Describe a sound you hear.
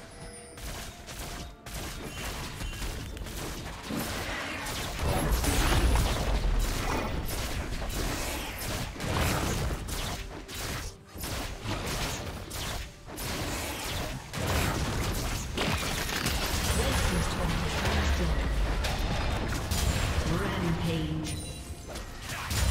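Spell blasts and weapon hits crackle and thud in a busy fight.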